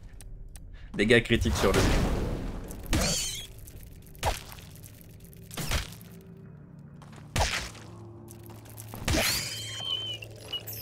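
A fiery spell bursts with a loud whoosh.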